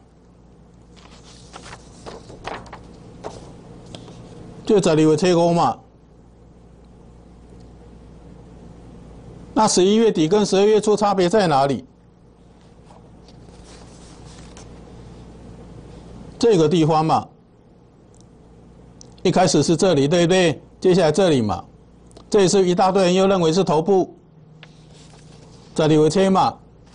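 Paper sheets rustle as they are handled.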